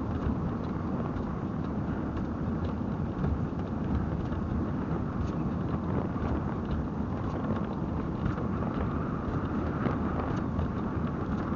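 Wind rushes loudly past the microphone on a fast-moving vehicle.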